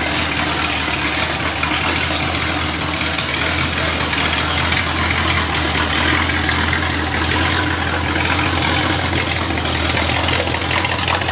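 An engine runs loudly at a steady, rumbling idle close by.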